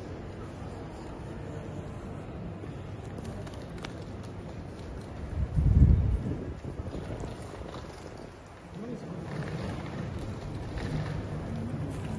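Suitcase wheels roll over a hard floor in a large echoing hall.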